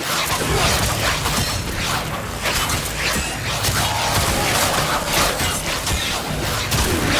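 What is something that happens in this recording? Energy weapons fire in rapid bursts with crackling zaps.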